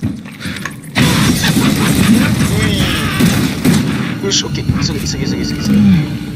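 A creature snarls and shrieks loudly.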